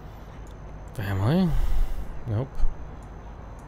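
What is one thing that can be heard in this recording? A young man speaks briefly and with animation into a microphone.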